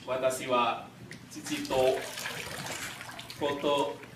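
Water pours and trickles onto a person's head.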